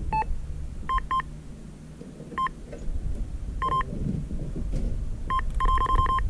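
An electronic bite alarm beeps in short bursts, faster toward the end.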